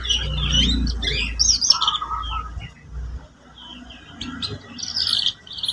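A canary sings a rapid, warbling song close by.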